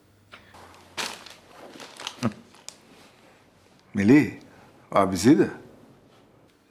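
A man speaks calmly into a phone.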